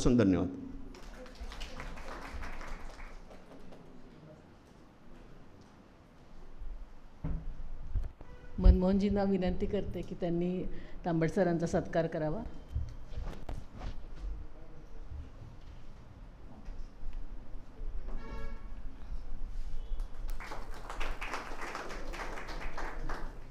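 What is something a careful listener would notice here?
A small audience applauds.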